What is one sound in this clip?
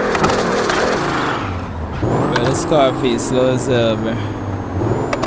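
Car tyres screech in a drift.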